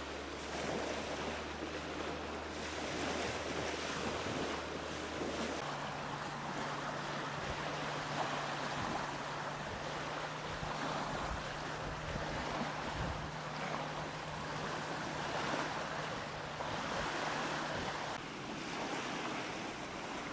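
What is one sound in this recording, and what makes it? Waves lap against the shore.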